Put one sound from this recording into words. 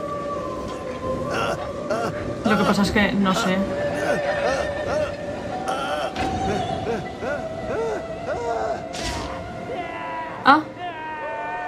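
A man screams in anguish.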